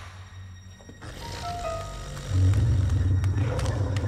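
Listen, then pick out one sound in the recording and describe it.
A dog snarls and growls loudly.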